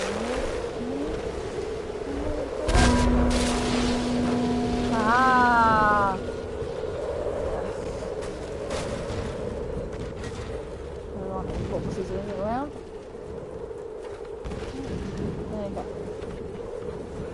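A low wind howls steadily in the background.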